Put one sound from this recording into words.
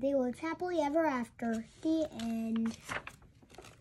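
A young boy reads aloud in a lively, sing-song voice close by.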